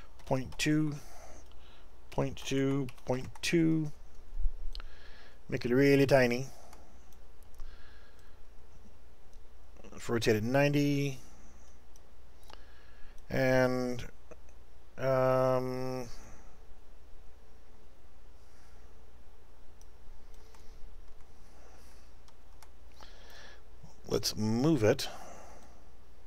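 A middle-aged man talks calmly and close to a microphone, in short bursts with pauses.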